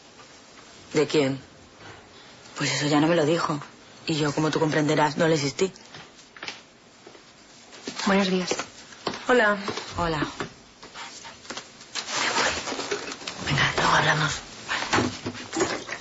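A woman answers in a low, earnest voice.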